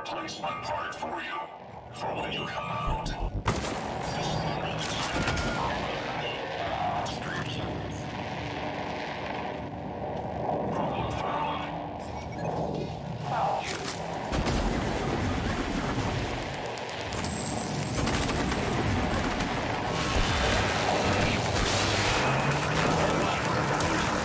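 Gunfire from a game blasts repeatedly.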